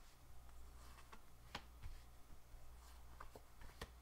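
A card slaps lightly down onto a table.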